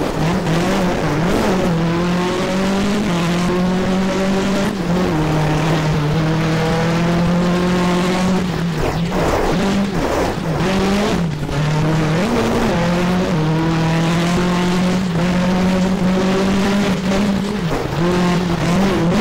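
Tyres crunch and hiss over gravel.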